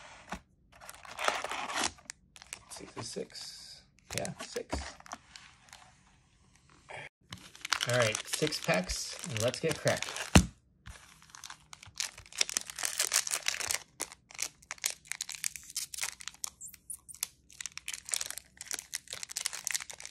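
Foil wrappers crinkle and rustle as they are handled.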